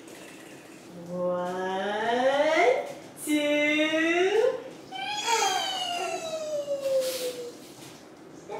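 A young woman sings in a high, sing-song voice, close by.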